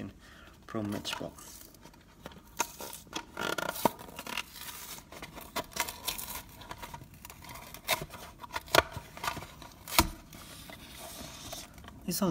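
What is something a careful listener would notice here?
Cardboard tears as a toy package is peeled open.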